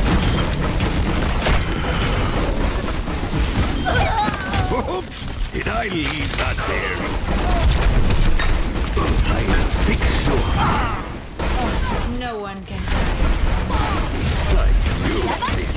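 A video game's weapon fires in rapid, clattering bursts.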